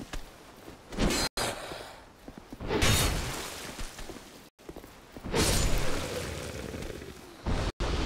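Heavy weapon blows land with loud, crashing thuds.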